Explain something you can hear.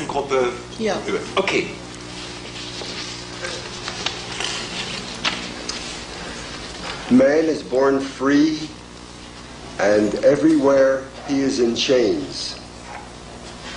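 An older man speaks firmly and clearly, close by.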